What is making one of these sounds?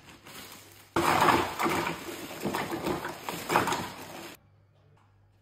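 Ice cubes clatter and rattle into a plastic tub.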